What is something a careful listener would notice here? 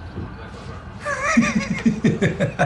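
An older man chuckles and speaks warmly.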